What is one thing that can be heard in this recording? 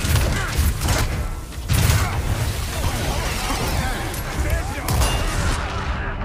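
An explosion bursts with a loud roar.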